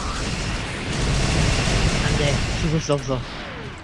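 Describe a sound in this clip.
A huge explosion booms and roars.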